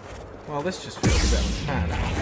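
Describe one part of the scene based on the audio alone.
A lightsaber ignites with a loud humming whoosh.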